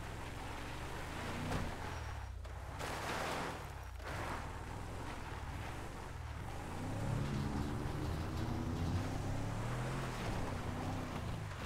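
A truck engine rumbles steadily as it drives.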